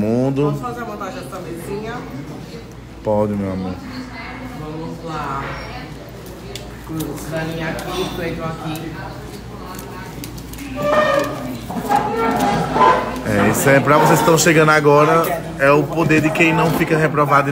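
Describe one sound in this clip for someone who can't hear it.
Young women talk and chatter with animation close by.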